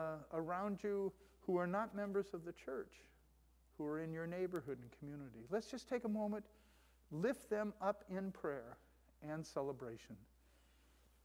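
A man speaks calmly into a microphone in a slightly echoing room.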